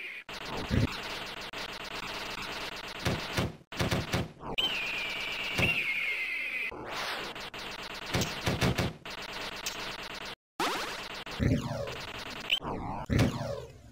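Video game shots fire rapidly with electronic blips.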